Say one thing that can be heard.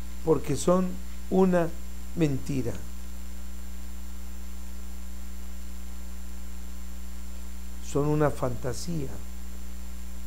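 A middle-aged man speaks calmly and slowly into a close microphone.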